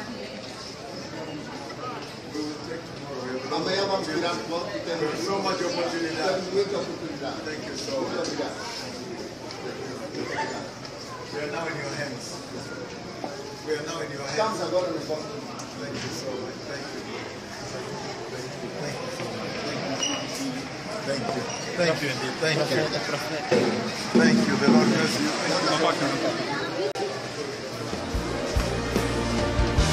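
A crowd of men and women chatter in an echoing hall.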